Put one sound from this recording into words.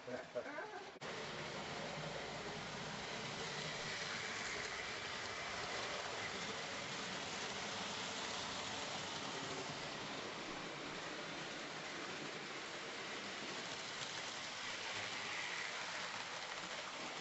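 A model train whirs and clatters steadily along its track.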